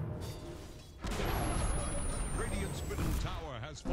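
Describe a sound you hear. A tower explodes with a loud burst.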